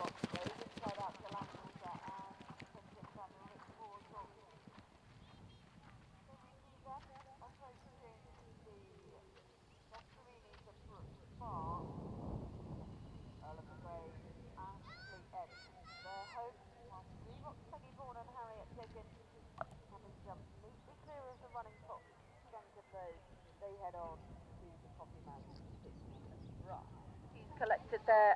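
A horse's hooves thud on grass at a gallop.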